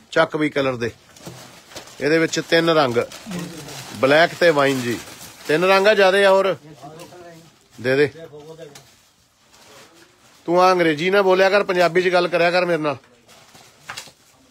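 Fabric rustles as it is handled and unfolded.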